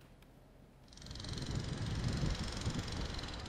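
Wind blows outdoors over open water.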